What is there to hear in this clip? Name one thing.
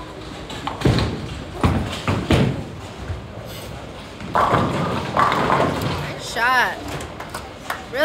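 Bowling pins crash.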